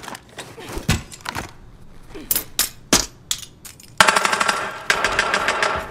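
Footsteps thud quickly up stairs.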